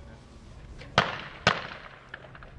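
Two loud shotgun blasts ring out in quick succession and echo across open ground.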